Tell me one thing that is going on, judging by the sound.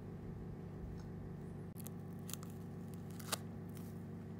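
Small plastic parts click softly between fingers.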